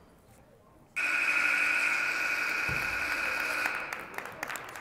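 A loud buzzer sounds steadily in an echoing gym.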